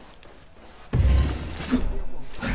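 A heavy blast booms and hums.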